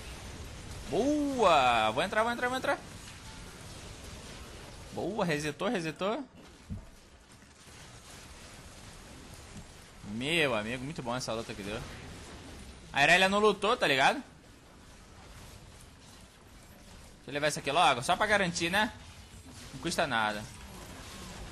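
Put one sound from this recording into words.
A young man speaks with animation into a microphone, in short bursts.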